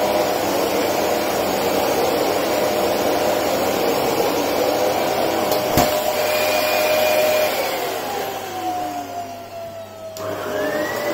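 A vacuum cleaner motor roars steadily, then winds down and stops.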